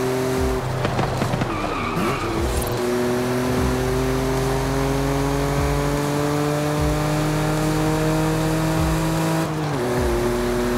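A sports car engine hums steadily and rises in pitch as the car accelerates.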